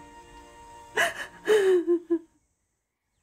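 A woman cries out with emotion close by.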